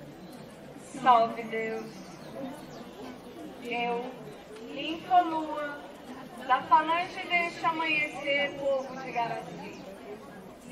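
A group of women chant outdoors.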